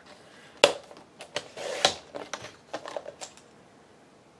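Paper slides and taps on a paper trimmer.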